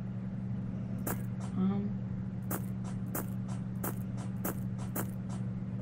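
Footsteps tap lightly in a quick, even rhythm.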